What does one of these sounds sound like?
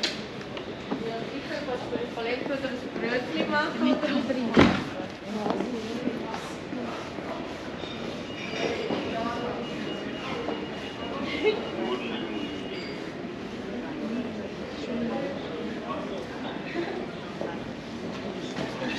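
Men and women chat nearby.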